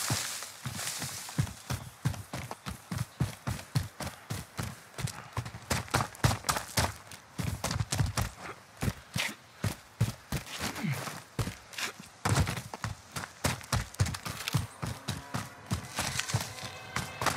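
Footsteps thud quickly in a steady running rhythm.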